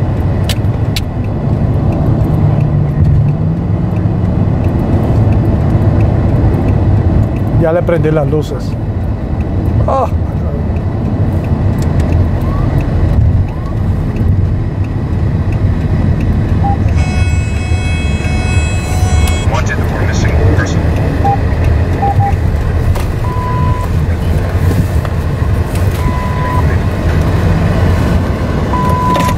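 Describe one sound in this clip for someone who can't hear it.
Engine and tyres rumble steadily from inside a moving car on a highway.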